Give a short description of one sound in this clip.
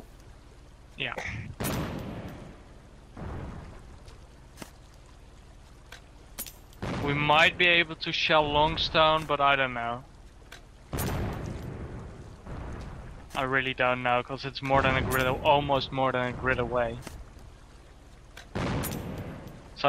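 A boat's cannon fires repeatedly with heavy booms.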